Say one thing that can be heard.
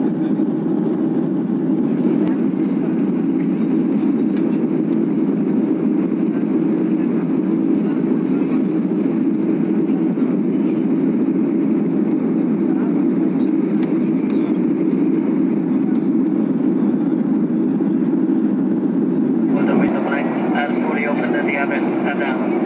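Jet engines roar steadily inside an airliner cabin.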